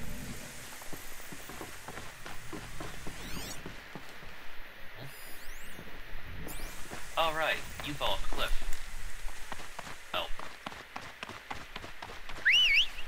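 Footsteps patter quickly over hard ground.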